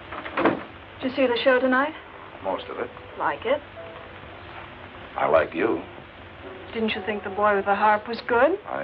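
A woman speaks softly and with feeling, close by.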